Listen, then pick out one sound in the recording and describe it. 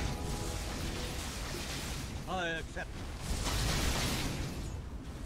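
Fantasy game effects whoosh and chime.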